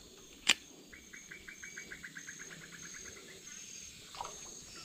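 A fishing reel ticks rapidly as its line is wound in.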